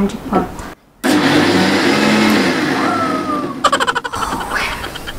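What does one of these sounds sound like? An electric mixer grinder whirs loudly for a few seconds.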